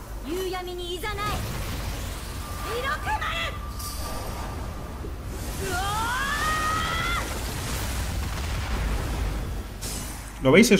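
A gust of wind whooshes and swirls.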